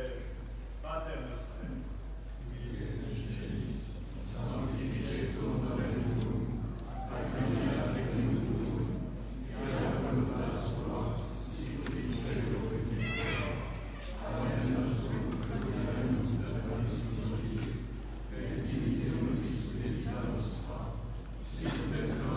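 A man chants a prayer in a steady voice, echoing through a large hall.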